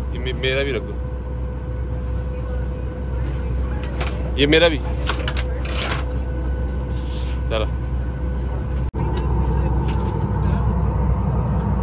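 A steady low hum of an aircraft cabin fills the air.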